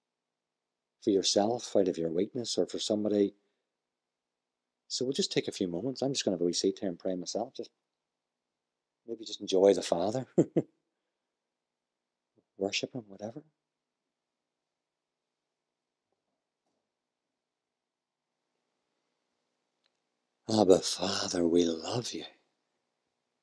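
A man speaks calmly into a microphone, in bursts with long pauses.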